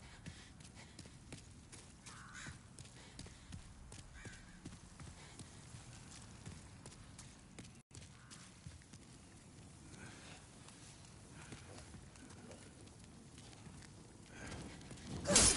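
Armored footsteps run on stone.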